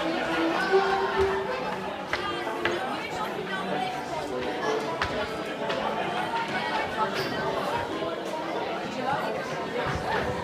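A crowd of children and adults chatter loudly in a large echoing hall.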